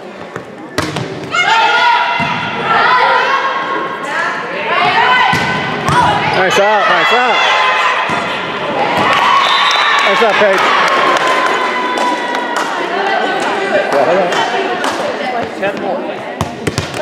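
Young women shout and cheer loudly in a large echoing gym.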